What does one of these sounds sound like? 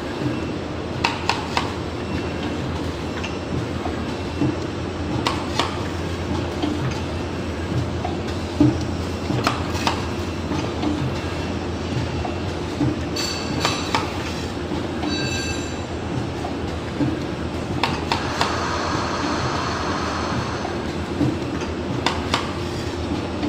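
A machine part clicks and clacks sharply now and then.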